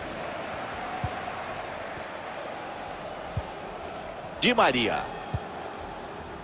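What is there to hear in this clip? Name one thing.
A football is kicked with dull thuds.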